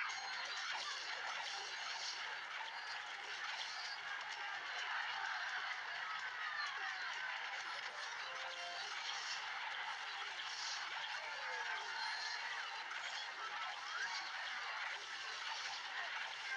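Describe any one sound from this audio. Game combat effects clatter and clash as small figures fight.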